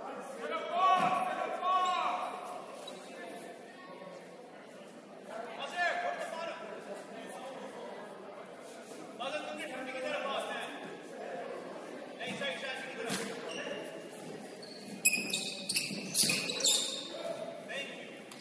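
Young men shout and call out to each other across a large echoing gym.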